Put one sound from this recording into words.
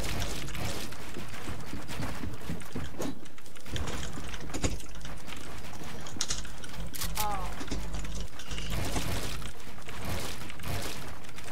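Keyboard keys clatter rapidly under fast typing.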